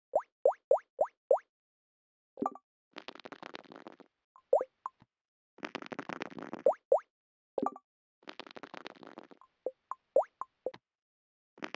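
Short rising blips sound as game pieces hop forward.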